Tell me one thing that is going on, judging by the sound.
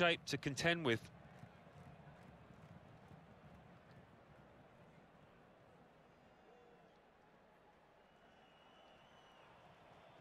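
A large stadium crowd cheers and chants in the distance.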